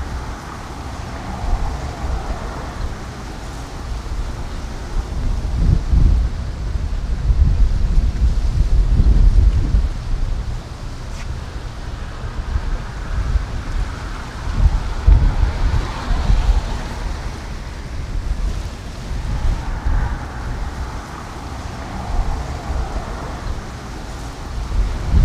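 Wind gusts and rumbles outdoors, rising and falling.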